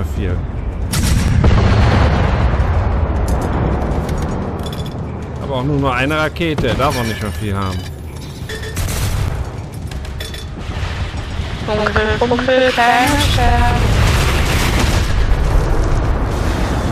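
Explosions boom with a deep, lingering rumble.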